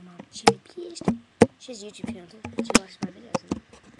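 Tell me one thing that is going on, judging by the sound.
A young person speaks loudly and animatedly close to the microphone.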